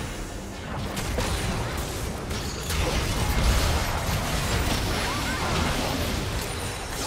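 Game spell effects crackle and boom in a fast battle.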